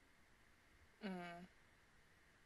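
A young woman briefly hums close to a microphone.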